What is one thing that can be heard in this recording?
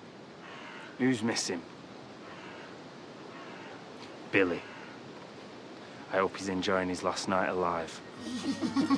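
A man speaks tensely in short bursts, close by.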